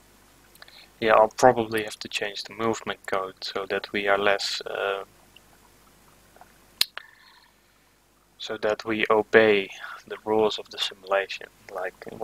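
A young man speaks calmly and close into a microphone.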